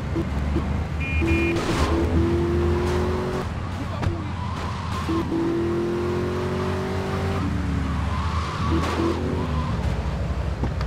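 A sports car engine revs and roars, rising in pitch as it speeds up and dropping as it shifts gears.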